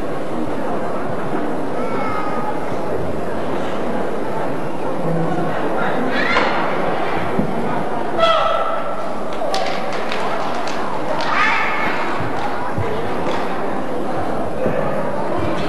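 Footsteps stamp and scuff on the floor.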